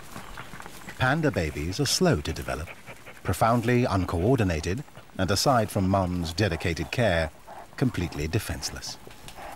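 A red panda cub squeals and whimpers.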